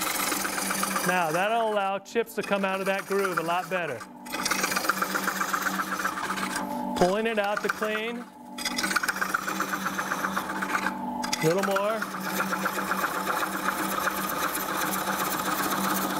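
A lathe motor hums steadily.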